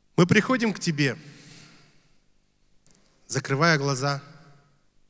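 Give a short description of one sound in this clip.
A young man sings into a microphone, heard through loudspeakers in a large echoing hall.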